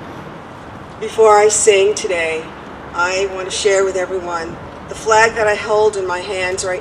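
A woman speaks calmly into a microphone, heard through a loudspeaker outdoors.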